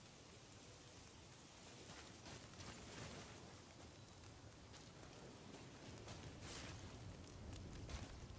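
Footsteps crunch on dirt and snow.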